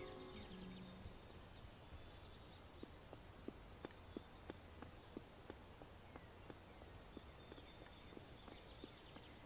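Footsteps tap lightly on a floor.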